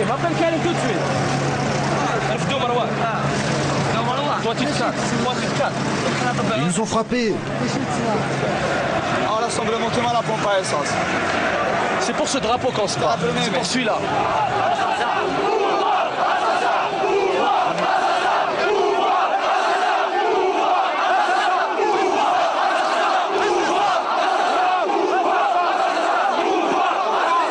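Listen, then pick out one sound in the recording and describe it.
A crowd of people talks and shouts loudly outdoors.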